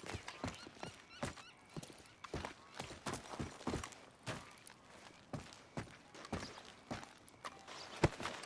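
Boots thud steadily on wooden boards.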